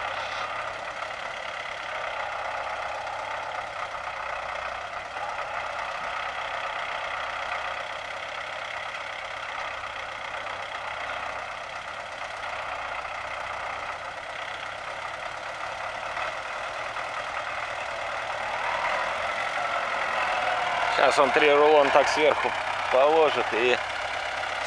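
A tractor engine runs steadily nearby.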